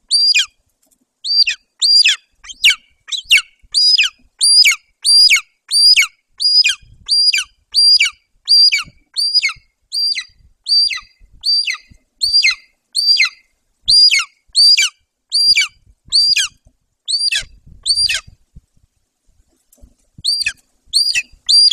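A large bird flaps its wings.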